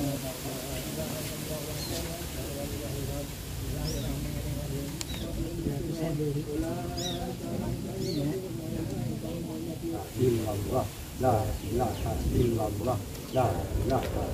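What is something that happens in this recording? A group of men and women chant prayers together in unison, outdoors.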